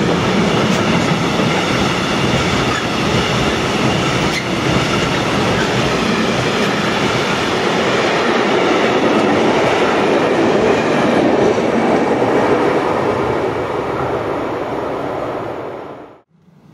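A long freight train rumbles and rattles past close by, then fades into the distance.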